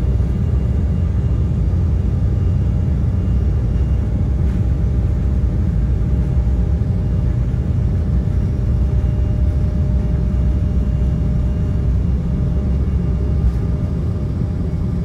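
Aircraft wheels rumble fast over a runway.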